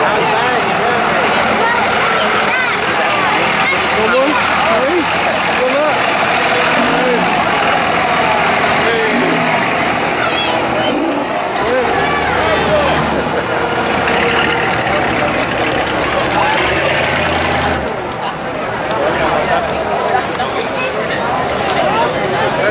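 A large car engine rumbles low as it rolls slowly past.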